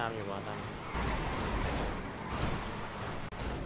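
Cars crash into each other with a metallic crunch.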